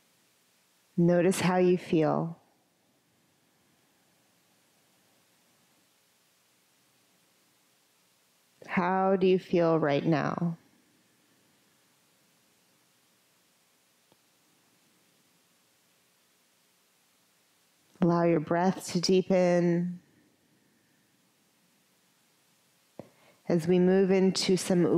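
A woman speaks calmly and slowly through a headset microphone, with long pauses.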